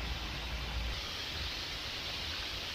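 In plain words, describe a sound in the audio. Hot oil sizzles and bubbles steadily in a fryer.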